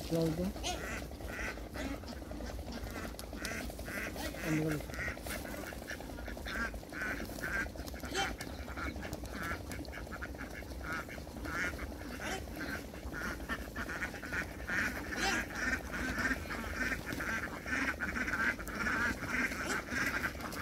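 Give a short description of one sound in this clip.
A large flock of domestic ducks quacks.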